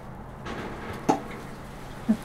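A metal bowl clinks as it is set down.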